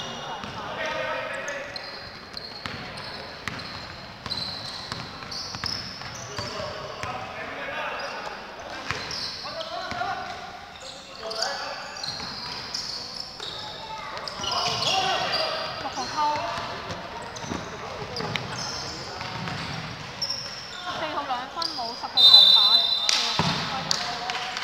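A basketball bounces on a hard court, echoing in a large hall.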